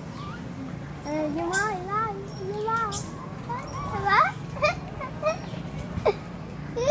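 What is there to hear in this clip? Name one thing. Monkeys squeal and chatter nearby with high, wavering calls.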